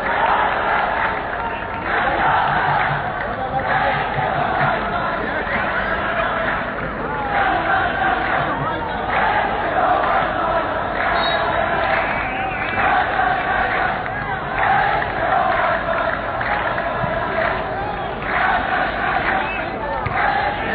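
A large crowd of men chants and cheers loudly outdoors.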